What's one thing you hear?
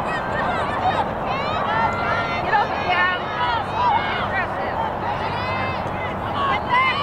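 Teenage girls shout and call to each other across an open field.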